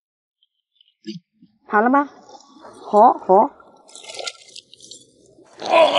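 Water splashes as a hand gropes in a shallow pool.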